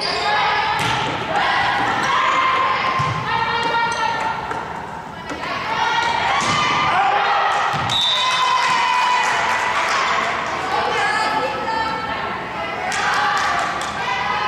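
A volleyball is hit with sharp slaps in a large echoing gym.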